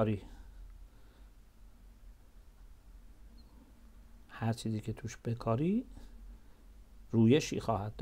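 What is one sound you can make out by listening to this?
A middle-aged man speaks calmly and slowly into a close microphone, with long pauses.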